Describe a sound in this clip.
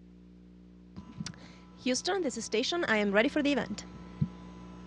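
A woman speaks with animation into a microphone, heard over a radio link.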